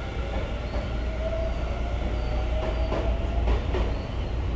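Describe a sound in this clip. A train's motor whines, slowly rising in pitch.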